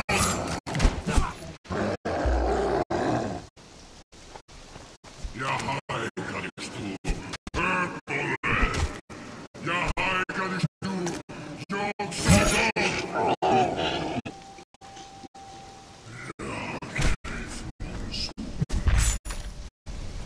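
A blade strikes and thuds in combat.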